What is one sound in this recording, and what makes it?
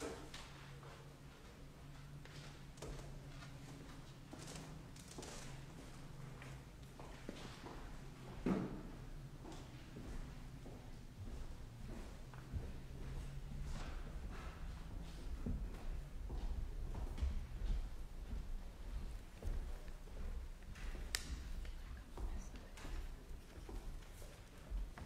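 A piano plays softly in a large echoing hall.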